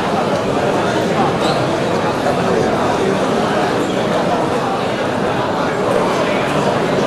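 A large crowd cheers and chatters loudly in an echoing hall.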